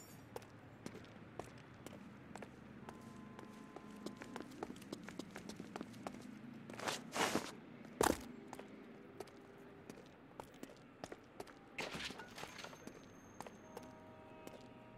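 Footsteps tap quickly on pavement.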